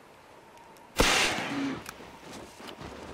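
A flare gun fires with a sudden loud bang and a hissing burst.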